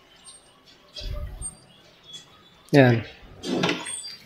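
A wooden drawer slides open with a dull thud.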